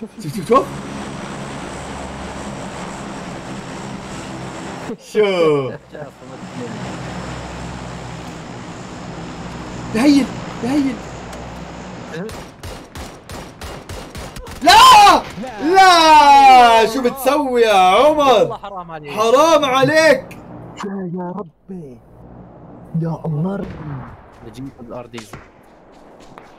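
A man talks excitedly into a close microphone.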